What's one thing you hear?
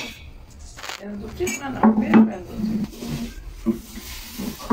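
A woman talks nearby in a calm voice.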